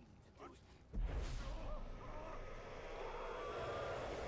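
A magical blast whooshes and roars loudly.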